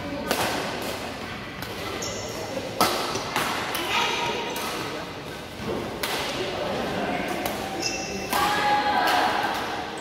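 Shuttlecocks are struck sharply with rackets, again and again, in a large echoing hall.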